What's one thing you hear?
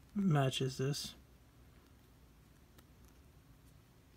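Small plastic parts click softly as fingers handle them.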